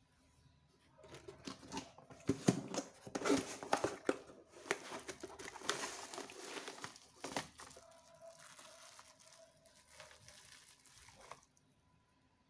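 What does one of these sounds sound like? A cardboard box is torn open and flaps rustle.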